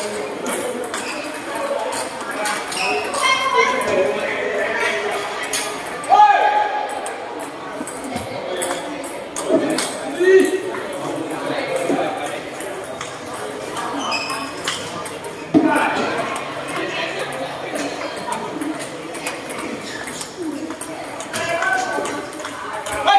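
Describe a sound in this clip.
Table tennis balls click rapidly off paddles and tables in a large echoing hall.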